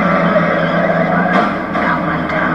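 A car crashes hard into a wall.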